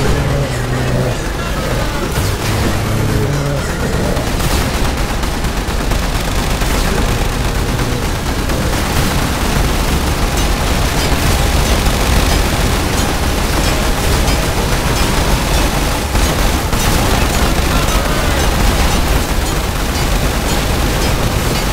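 Game guns fire rapidly.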